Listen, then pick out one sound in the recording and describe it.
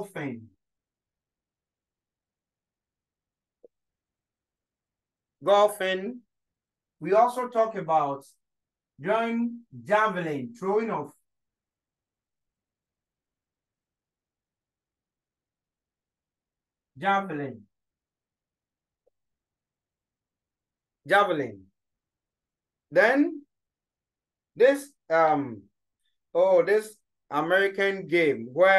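A man speaks calmly and clearly, close by, pausing between phrases.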